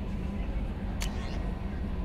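A short electronic click sounds.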